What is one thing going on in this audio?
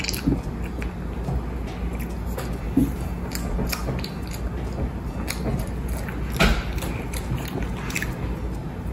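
Popcorn rustles and crunches in a bowl.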